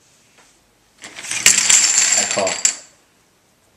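A pile of poker chips clatters as it is pushed across a table.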